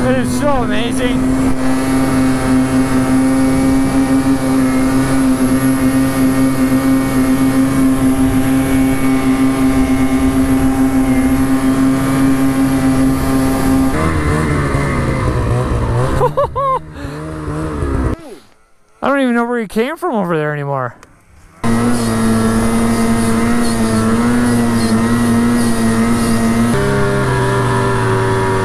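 A snowmobile engine drones steadily up close, its pitch shifting now and then.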